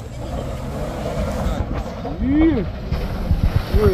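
A small truck's engine hums as it drives toward the listener.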